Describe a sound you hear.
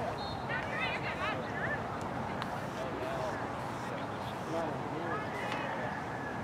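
A crowd murmurs faintly far off outdoors.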